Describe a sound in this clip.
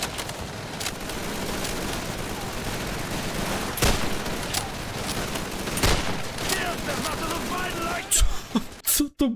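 Gunfire pops in the distance.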